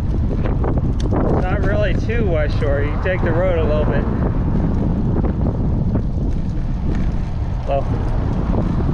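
Wind blows steadily and rumbles outdoors.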